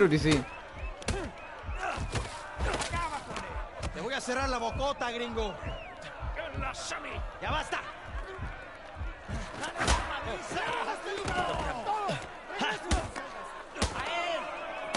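Heavy punches thud again and again.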